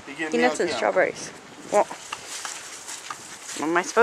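A wheelbarrow rattles as it is pushed over grass.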